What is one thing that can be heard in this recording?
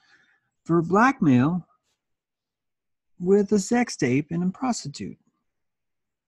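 A middle-aged man speaks calmly and close to a microphone, in short phrases with pauses.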